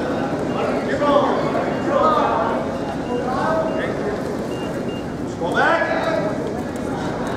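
Spectators shout encouragement loudly in an echoing gym.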